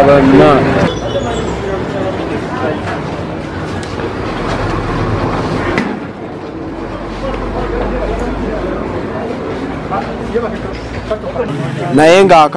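Several people talk in agitated voices nearby.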